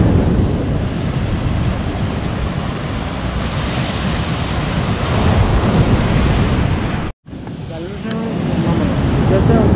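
Waves crash against rocks in the distance.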